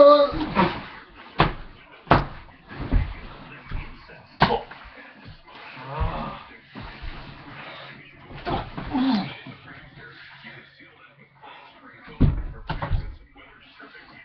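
Bodies thump and bounce on a mattress during rough play.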